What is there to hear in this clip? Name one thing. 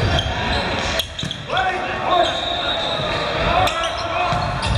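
A volleyball is struck with sharp smacks in an echoing gym.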